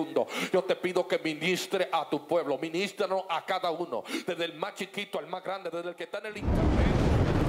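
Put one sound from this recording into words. A man speaks passionately into a microphone, heard through loudspeakers.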